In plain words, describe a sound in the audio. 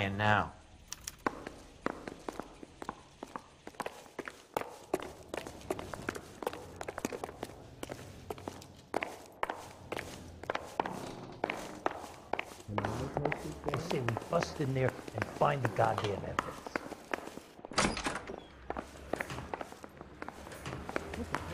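Footsteps tap on a hard floor and stairs.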